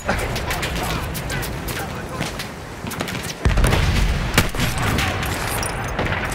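Gunfire cracks and explosions boom all around in a battle.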